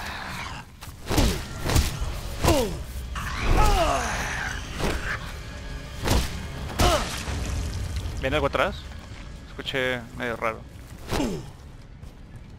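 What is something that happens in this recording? A monstrous creature shrieks and growls close by.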